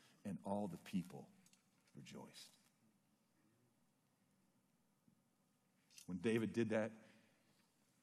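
A middle-aged man speaks with emphasis into a microphone, with pauses between phrases.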